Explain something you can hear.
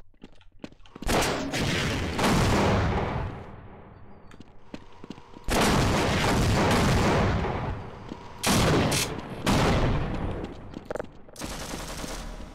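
Rockets fire and explode with loud, rumbling booms.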